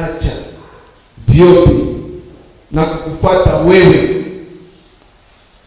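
A man speaks into a microphone with a calm, measured voice.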